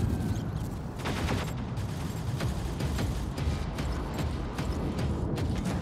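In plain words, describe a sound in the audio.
Heavy metal footsteps clank at an even pace.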